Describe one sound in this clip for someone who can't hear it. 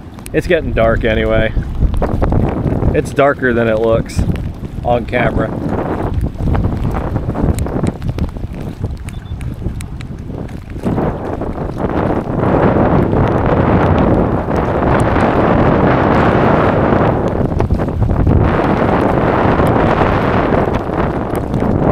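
Strong wind gusts roar across the microphone.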